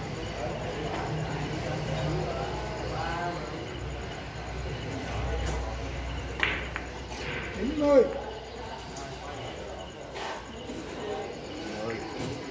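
Men murmur and chat nearby in a room.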